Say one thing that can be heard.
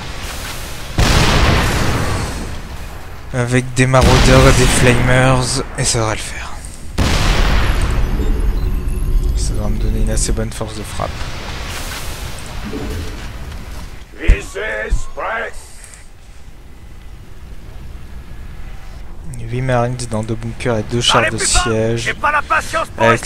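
Gunfire crackles and explosions boom in a battle.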